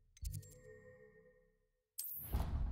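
A menu chime rings out and fades.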